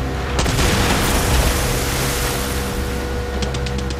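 Spray splashes down onto the water.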